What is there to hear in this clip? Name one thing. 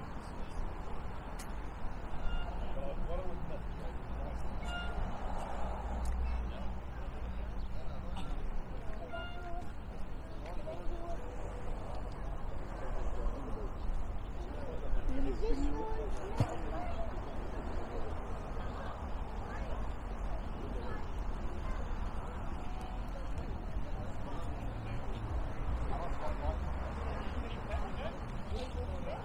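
Men and women chat in the distance.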